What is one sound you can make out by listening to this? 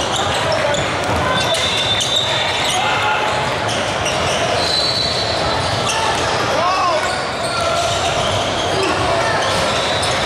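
A crowd chatters steadily in a large echoing hall.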